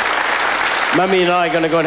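An elderly woman speaks into a microphone over a loudspeaker.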